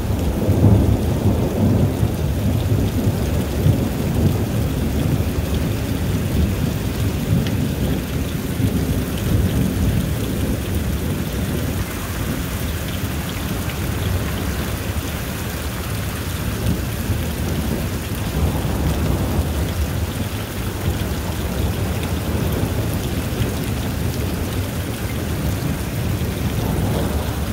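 Wind blows steadily outdoors with a low rumble.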